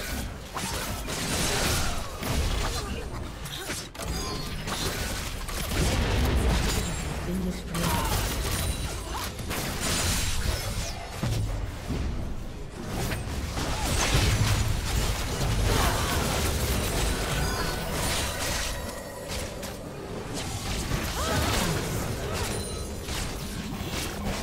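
Game spell effects blast and crackle in a fierce battle.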